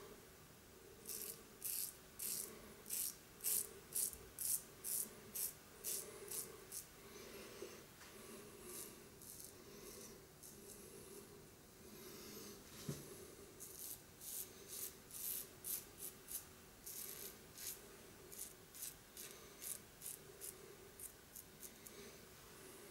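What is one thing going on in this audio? A razor scrapes over stubble in short, rhythmic strokes, close by.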